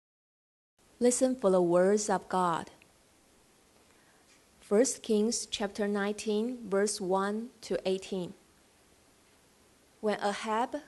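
A young woman reads out calmly through a microphone and loudspeakers.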